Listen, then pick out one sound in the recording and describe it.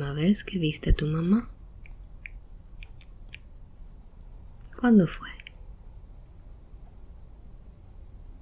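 A young woman breathes softly and slowly while asleep, close by.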